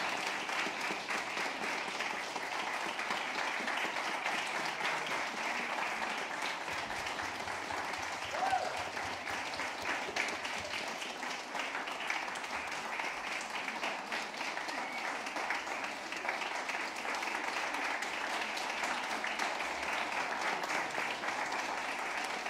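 A crowd of people chatters and murmurs.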